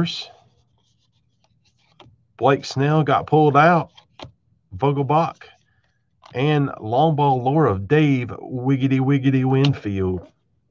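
Trading cards shuffle and slide against each other in hands.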